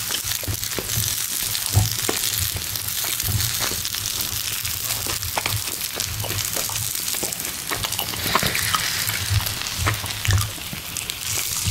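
Fingers press and tap on soft, hot vegetables.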